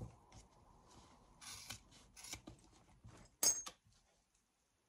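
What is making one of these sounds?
Metal rings clink as they are handled.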